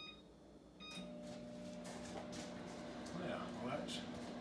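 A microwave hums steadily as it runs.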